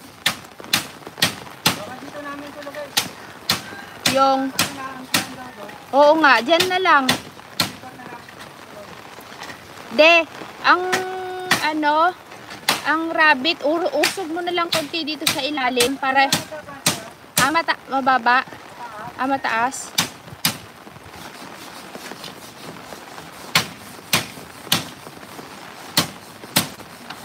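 Sharp knocks of work on bamboo come again and again.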